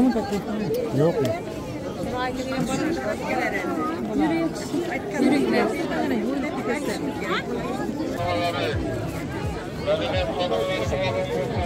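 A crowd of men and women chatters all around outdoors.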